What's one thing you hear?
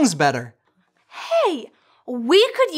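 A man speaks cheerfully.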